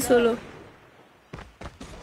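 Gunfire cracks in short bursts from a video game.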